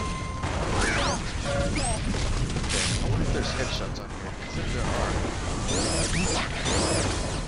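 An electric beam weapon crackles and hums as it fires.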